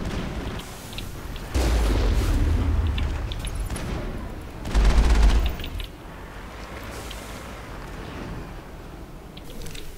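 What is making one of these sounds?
A heavy vehicle engine rumbles low.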